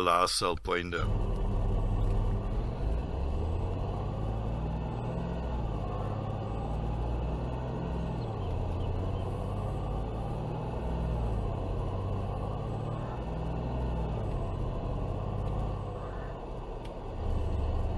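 A pickup truck's engine hums steadily as it drives along a road.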